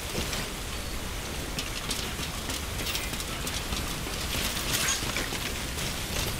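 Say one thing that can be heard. Water rushes and splashes steadily around wading feet.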